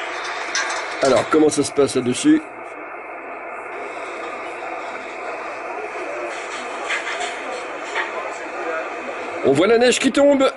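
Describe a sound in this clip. A man talks in short bursts over a radio, heard through a loudspeaker.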